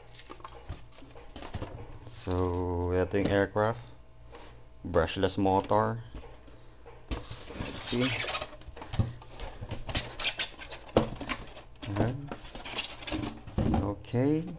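Foam packaging rubs and squeaks as it is pulled apart.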